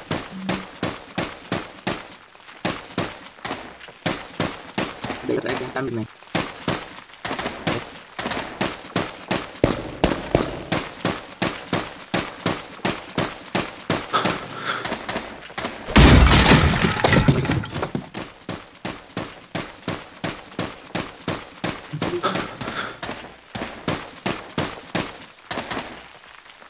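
Footsteps tread quickly and steadily on stone.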